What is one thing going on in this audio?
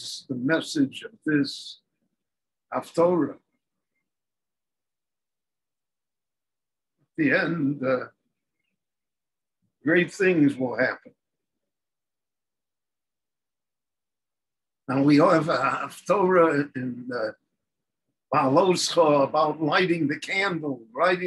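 An elderly man speaks calmly into a microphone close by, with long pauses.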